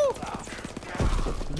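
An axe strikes a body with a heavy thud.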